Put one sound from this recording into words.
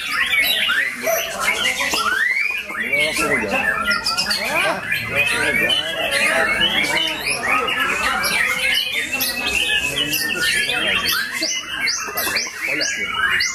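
A caged songbird sings loud, fast, varied whistling phrases close by.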